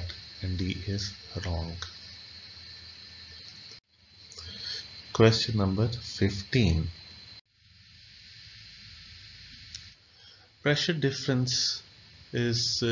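A man talks calmly and explains, heard close through a microphone, with pauses.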